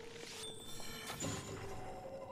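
A metal blade clangs against something with a sharp ring.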